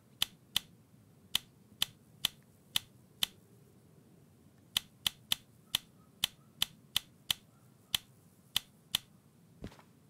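Toggle switches click sharply, one after another.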